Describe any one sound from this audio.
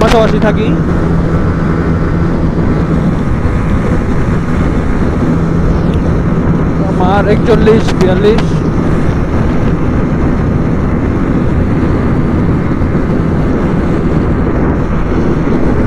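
Wind roars past at speed.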